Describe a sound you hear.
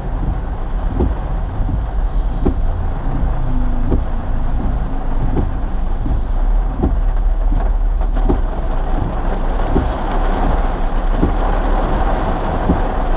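A car engine rumbles low from inside the car.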